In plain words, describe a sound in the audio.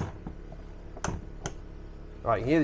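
A window latch clicks as a window swings open.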